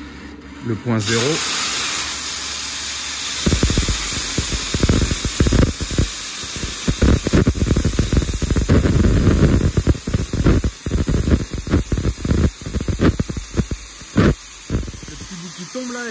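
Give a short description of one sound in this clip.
A plasma torch hisses and crackles loudly as it cuts metal.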